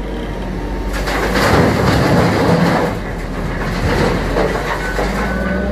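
Rocks pour from a loader bucket into a rail wagon with a loud rattling roar.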